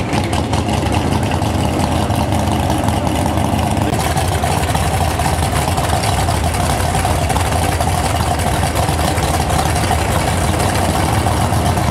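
A muscle car engine idles with a deep, lumpy rumble.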